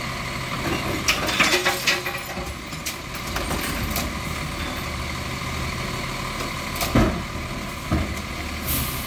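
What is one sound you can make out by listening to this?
Plastic bins clatter and bang against a truck.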